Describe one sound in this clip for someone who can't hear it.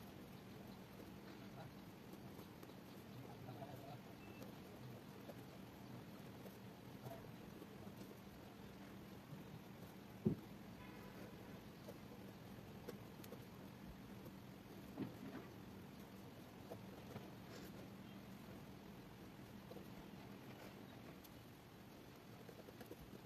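A ballpoint pen scratches on paper as someone writes.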